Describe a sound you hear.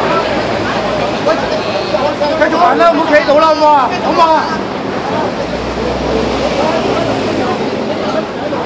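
A crowd of men and women talk loudly all around, close by.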